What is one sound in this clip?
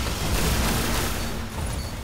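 Rapid gunfire blasts loudly and close by.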